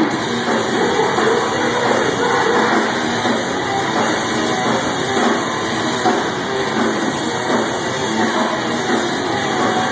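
A rock band plays loud distorted guitars and pounding drums through a large echoing hall.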